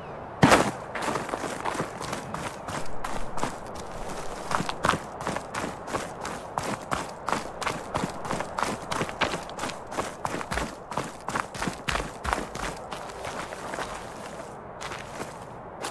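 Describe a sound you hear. Footsteps crunch on snow and rock.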